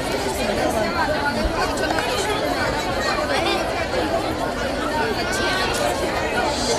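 A large crowd chatters outdoors.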